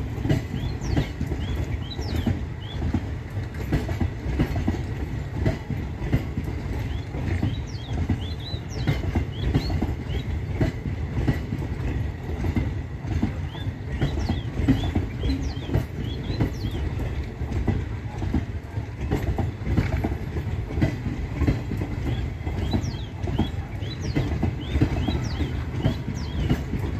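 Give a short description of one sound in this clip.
Train wheels clatter rhythmically over rail joints.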